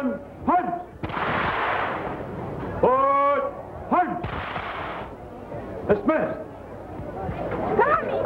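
Rifles clatter as soldiers move them.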